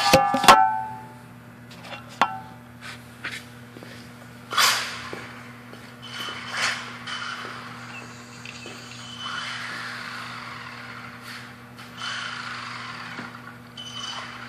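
A small toy car's electric motor whirs as it drives across a hard floor.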